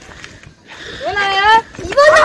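Children shout and call out ahead.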